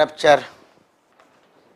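A man speaks briefly and loudly, close by.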